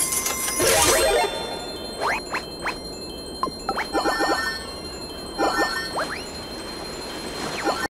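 Coins jingle as they are collected.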